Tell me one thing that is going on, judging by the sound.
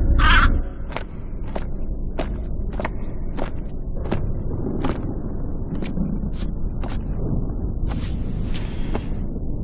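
Slow footsteps echo on a stone floor.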